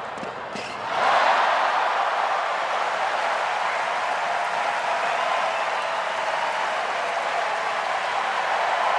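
A large crowd applauds and cheers loudly.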